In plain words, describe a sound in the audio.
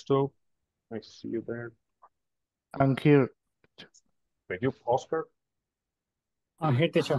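A man speaks calmly over an online call, in short phrases with pauses.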